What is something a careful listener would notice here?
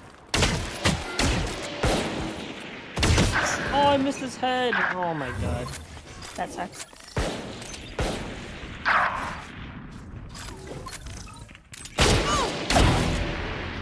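Loud rifle shots crack and boom.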